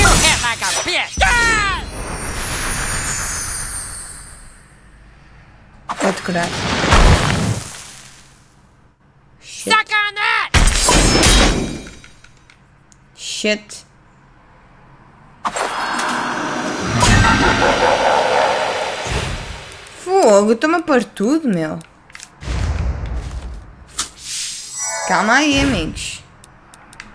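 Cartoon voices of a game shout and squeak.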